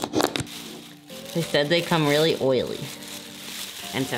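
Plastic wrap crinkles and rustles.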